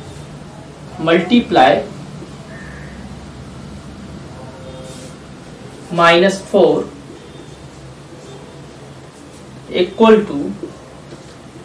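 A young man speaks calmly in short bursts, close by.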